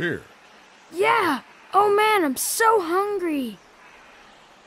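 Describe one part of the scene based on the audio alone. A young boy speaks with animation, close by.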